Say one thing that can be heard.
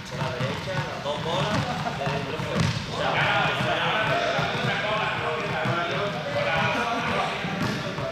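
Sneakers squeak and thud on a hard floor in an echoing hall.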